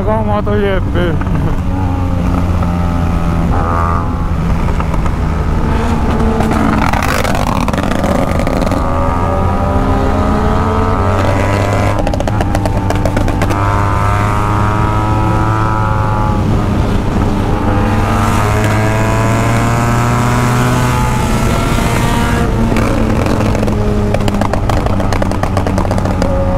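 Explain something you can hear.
A motorcycle engine roars at high speed, rising and falling in pitch as it revs through the gears.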